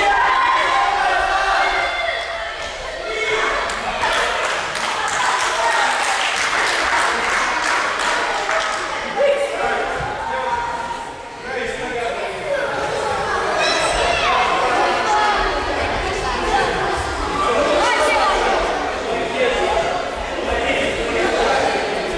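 Many children chatter and shout in a large echoing hall.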